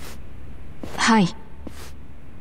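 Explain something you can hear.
A young woman answers softly.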